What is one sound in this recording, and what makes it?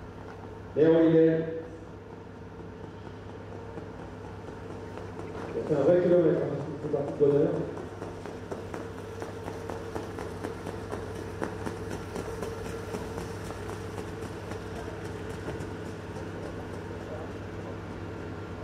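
A trotting horse's hooves beat on a dirt track.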